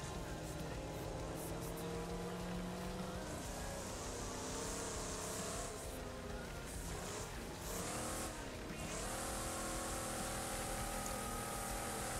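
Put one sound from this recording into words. A car engine roars loudly, its pitch rising and falling as the car slows into a turn.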